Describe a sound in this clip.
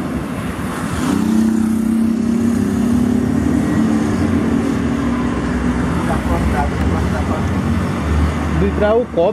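A diesel truck engine roars loudly as it passes close by.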